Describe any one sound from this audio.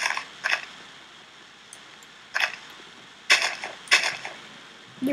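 Leaves rustle and crunch in short bursts as they are broken.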